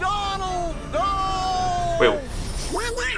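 A man's cartoonish voice calls out in alarm.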